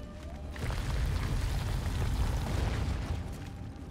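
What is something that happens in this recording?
Footsteps crunch on loose ground.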